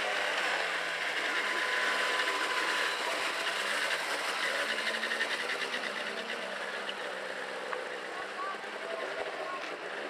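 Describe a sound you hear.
A rally car engine idles and rumbles nearby.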